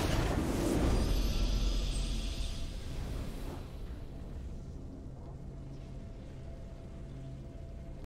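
A triumphant game fanfare swells up and fades.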